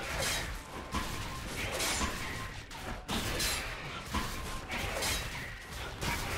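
Spell and weapon sound effects burst and crackle in quick succession.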